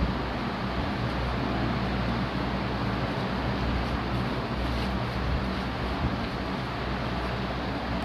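A man rubs a paper napkin between his hands.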